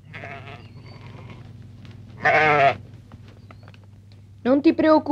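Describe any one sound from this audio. Sheep bleat loudly nearby, one after another.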